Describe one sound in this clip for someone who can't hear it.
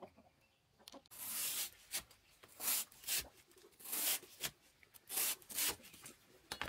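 A machete chops into a fresh bamboo shoot.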